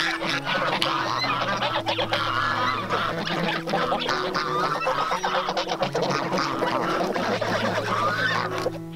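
Geese peck and tear at crunchy cabbage leaves.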